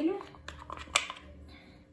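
Flour pours softly into a plastic bowl.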